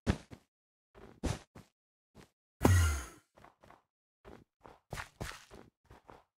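Game footsteps tap quickly across stone blocks.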